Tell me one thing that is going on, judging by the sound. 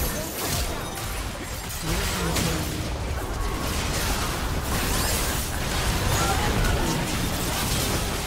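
Magic spells and attacks crackle and burst in a fast game battle.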